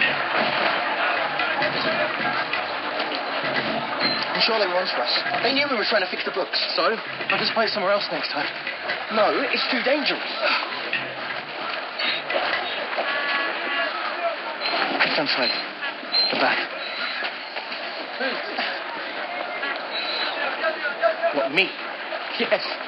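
A crowd chatters in a busy market.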